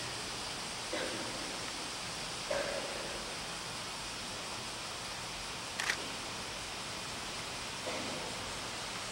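Faint shuffles and knocks from a seated crowd echo now and then through a large hall.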